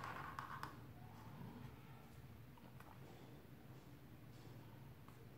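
A felt-tip pen squeaks and scratches softly on paper.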